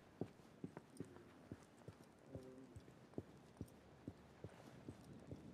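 Footsteps run quickly across a hard stone floor.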